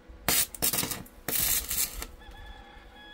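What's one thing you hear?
An electric welder crackles and hisses briefly.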